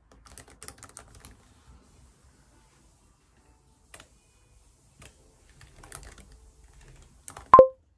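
Fingers tap quickly on a laptop keyboard, close by.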